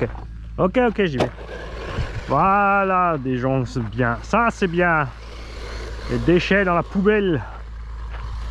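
A small electric motor whines, revving up and down in quick bursts.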